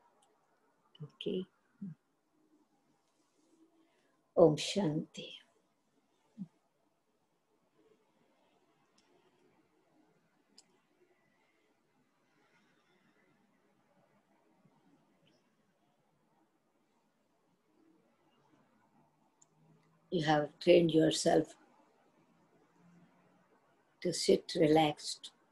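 An elderly woman speaks calmly and slowly into a close microphone, with long pauses.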